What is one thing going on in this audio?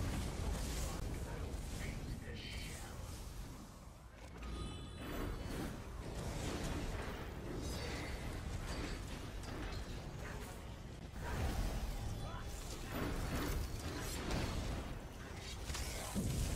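Magic spells crackle and burst in quick succession.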